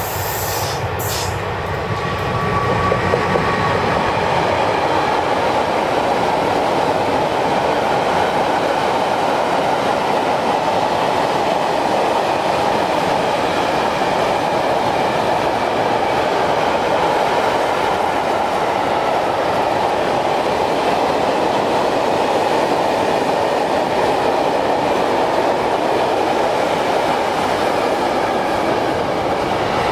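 A freight train rumbles and clatters steadily past on the rails.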